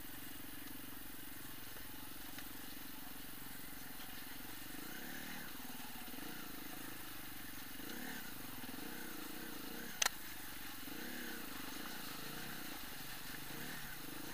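A motorbike engine hums and revs up and down.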